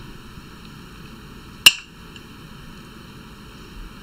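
Olives tumble and clatter into a stone mortar.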